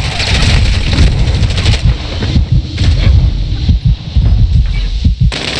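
Explosions boom with deep, rumbling thuds.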